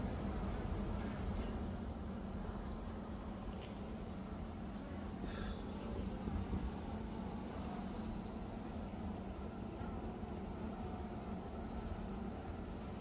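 Many bees buzz steadily close by.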